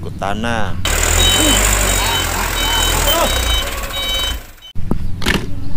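A truck engine rumbles nearby.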